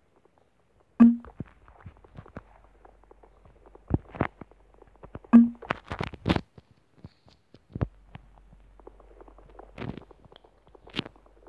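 A pickaxe digs at dirt with short, scraping knocks.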